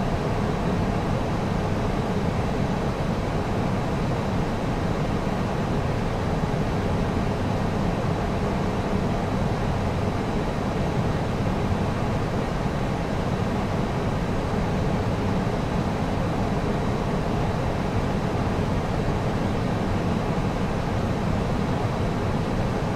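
A steady roar of airflow and engines fills the cockpit of a jet airliner in flight.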